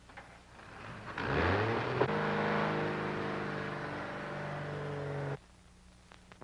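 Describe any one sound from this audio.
A vintage car engine starts up and revs.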